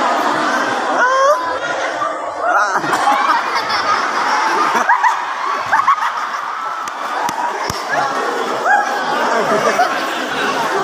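Children in a crowd laugh and shriek excitedly.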